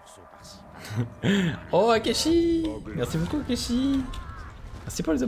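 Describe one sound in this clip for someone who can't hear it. An orc growls and snarls loudly.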